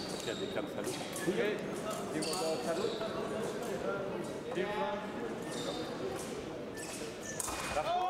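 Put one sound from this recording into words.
Shoes squeak and footsteps tap on a hard floor in a large echoing hall.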